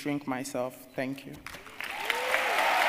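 A young man speaks into a microphone in a large hall.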